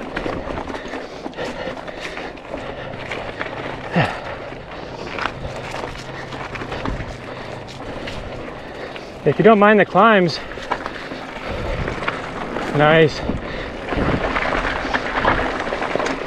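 Bicycle tyres crunch and bump over a rocky dirt trail.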